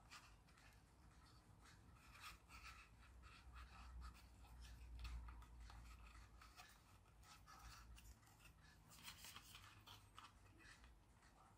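Plastic parts click and rustle as hands fit a suction cup into a holder.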